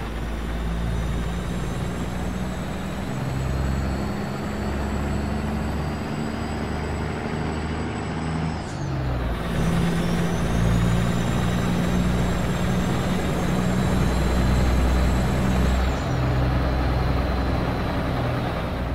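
A diesel semi-truck engine drones while cruising.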